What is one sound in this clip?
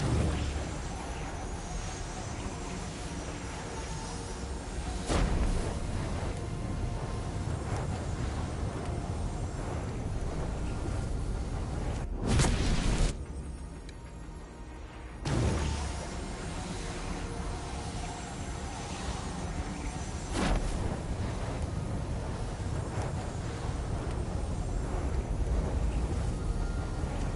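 Fire crackles and roars in bursts.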